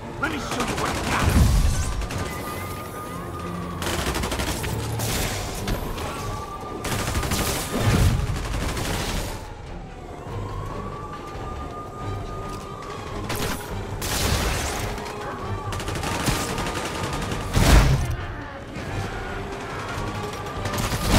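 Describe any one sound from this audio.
Punches and kicks thud hard against bodies in a brawl.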